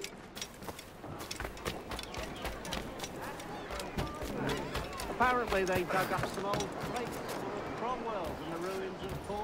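Footsteps run quickly over ground and wooden boards.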